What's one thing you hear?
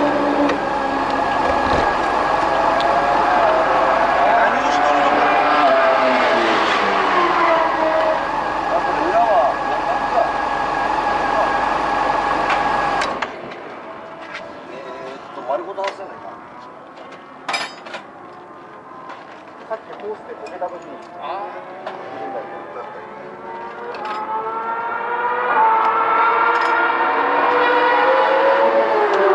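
A motorcycle engine idles and revs up close.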